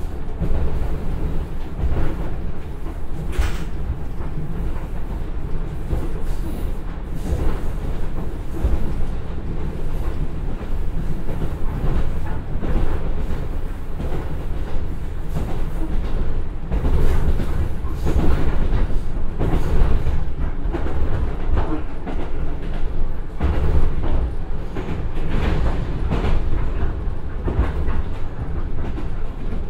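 A diesel train engine rumbles steadily as the train runs along the track.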